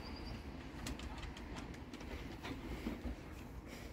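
A dog's paws patter on a wooden deck.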